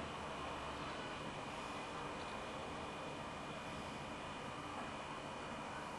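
Beer fizzes and crackles in a glass.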